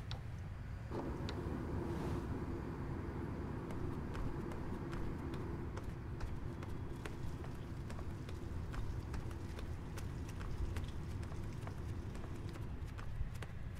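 An oven hums steadily.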